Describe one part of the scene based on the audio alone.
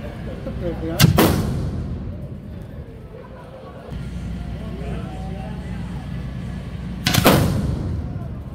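Firecrackers explode with loud, sharp bangs.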